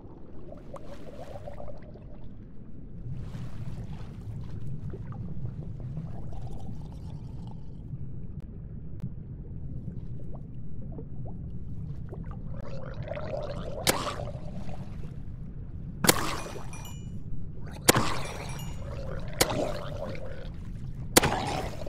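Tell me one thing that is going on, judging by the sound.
An underwater zombie gurgles and groans.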